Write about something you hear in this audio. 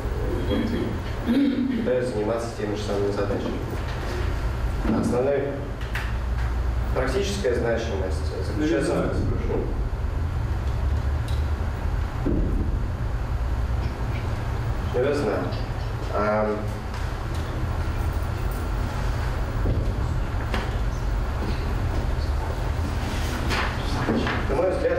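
A young man speaks calmly, a little way off.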